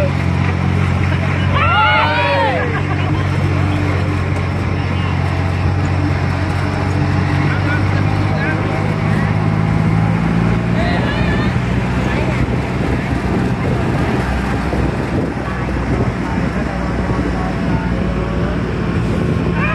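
A vehicle's engine drones while driving along a road.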